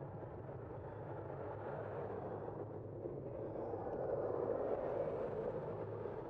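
A car drives past close by with a swelling whoosh.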